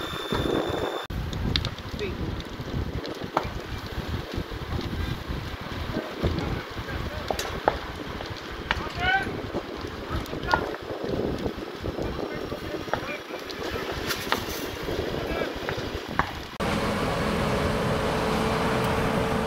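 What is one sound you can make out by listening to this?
A thatched roof fire crackles and pops.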